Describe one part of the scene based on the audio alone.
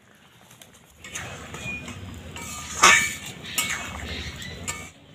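A metal spoon stirs and scrapes in a wok.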